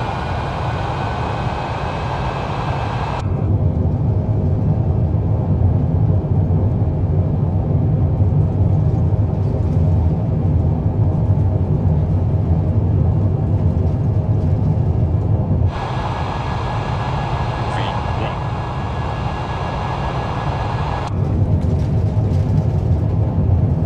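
Jet engines roar steadily as an airliner rolls along a runway.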